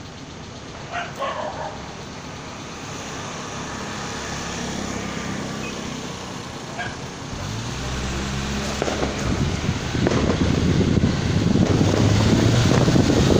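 Wind rushes against the car.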